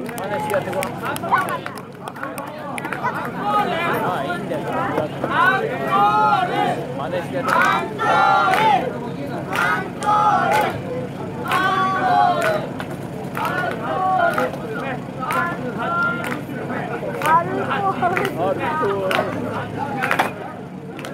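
A live band plays loud music through loudspeakers outdoors.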